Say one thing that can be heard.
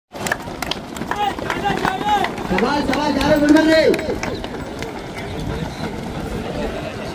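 A crowd of young men shout and chant together outdoors.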